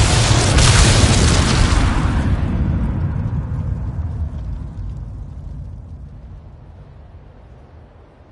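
A huge explosion roars and rumbles, slowly fading away.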